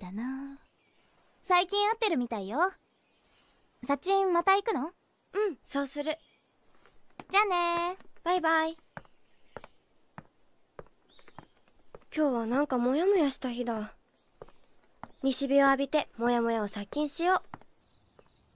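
A young girl speaks brightly and close by, in short bursts with pauses.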